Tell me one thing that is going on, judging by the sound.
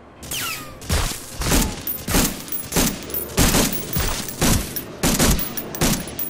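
A submachine gun fires short bursts of loud, sharp shots.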